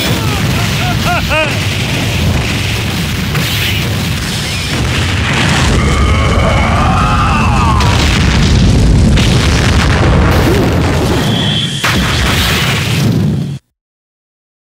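Rapid punches and blasts crash in a fast, loud flurry.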